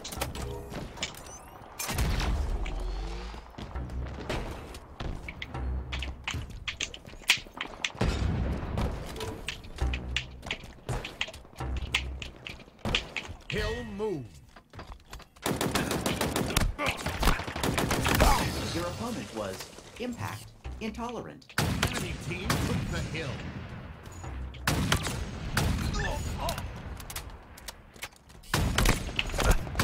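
Gunshots crack from a game in quick bursts.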